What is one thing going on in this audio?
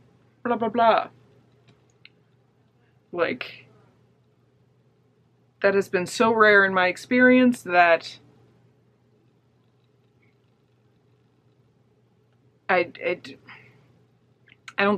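A young woman talks close to a microphone in short, animated bursts with pauses.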